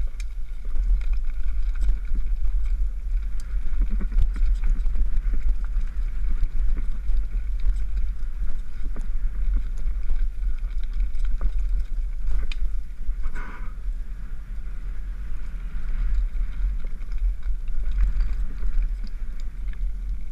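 Wind rumbles loudly against a helmet microphone.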